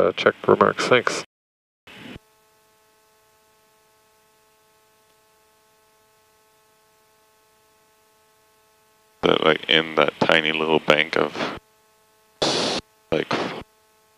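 A man speaks briskly over a radio headset, in short bursts.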